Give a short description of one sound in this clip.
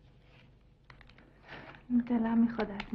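Paper crinkles as it is handled.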